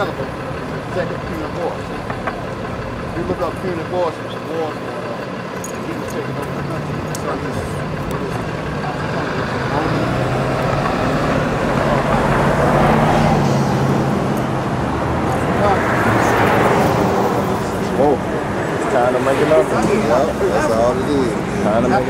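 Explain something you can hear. Several men and women talk in an outdoor crowd nearby.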